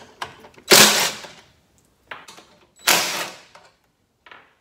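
A cordless drill whirs in short bursts close by.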